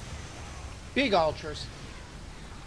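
A young man speaks briefly through a microphone.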